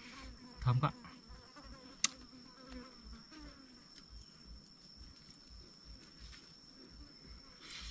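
A man crunches food in his mouth.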